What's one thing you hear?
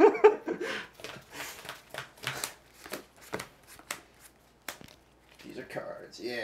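Playing cards slap and slide on a table.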